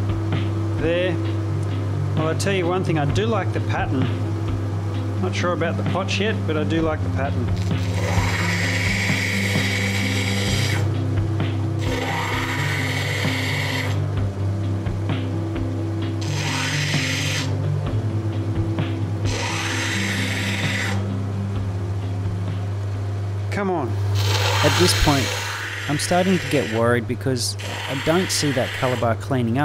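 A grinding machine's motor hums steadily.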